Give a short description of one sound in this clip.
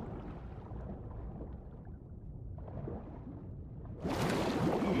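Water burbles in a deep, muffled way, as if heard underwater.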